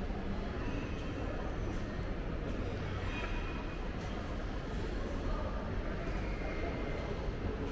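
An escalator hums and rumbles steadily nearby.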